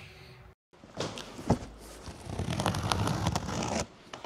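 A cardboard box scrapes and thumps.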